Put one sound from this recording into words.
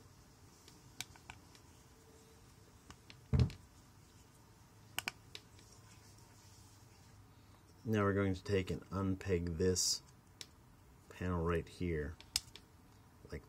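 Plastic toy parts click and snap as they are twisted into place.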